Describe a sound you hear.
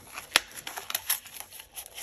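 Metal binder rings snap open with a sharp click.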